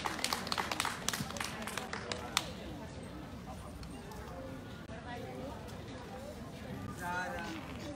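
A harmonica plays a melody.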